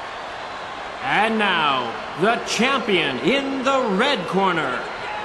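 A man announces loudly and with drawn-out emphasis through a microphone over a loudspeaker.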